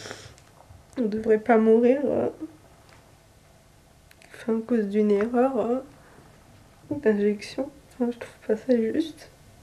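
A young woman speaks tearfully and haltingly, close by.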